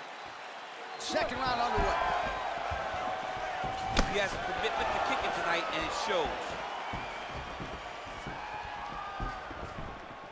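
A crowd cheers and whistles in a large echoing arena.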